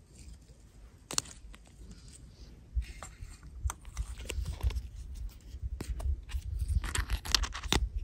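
Plastic pieces click and snap together.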